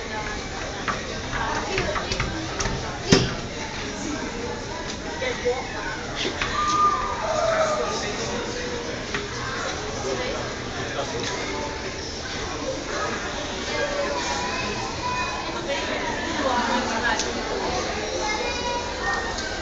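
Small children babble and squeal close by.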